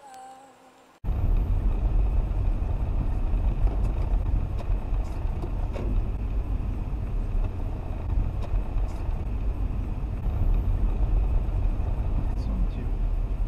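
A car engine and tyres rumble steadily from inside a moving car.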